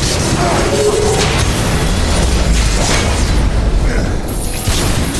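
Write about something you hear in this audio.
Swords clash and strike in a fast, noisy fight.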